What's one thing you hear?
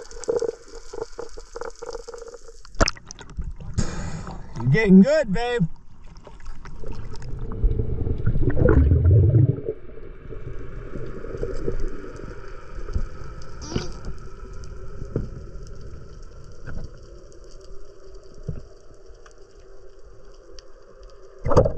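Water rumbles and bubbles underwater.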